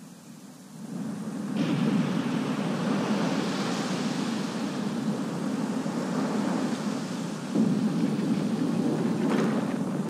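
Water rushes and pours loudly.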